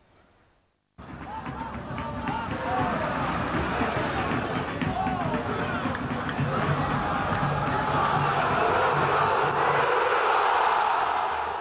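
A stadium crowd roars and cheers steadily, growing louder.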